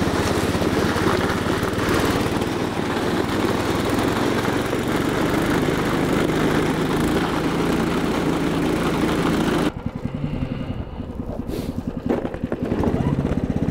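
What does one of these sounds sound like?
A small engine drones steadily close by.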